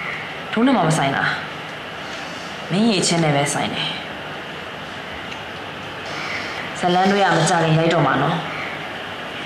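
A young woman speaks sharply and with feeling, close by.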